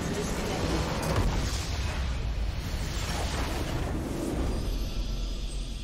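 A structure explodes with a deep rumbling boom.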